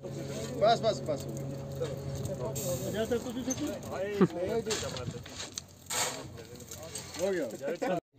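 A shovel scrapes into gravel.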